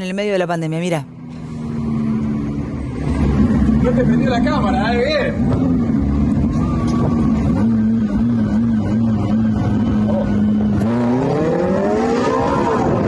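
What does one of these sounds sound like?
A sports car engine hums steadily and then revs up.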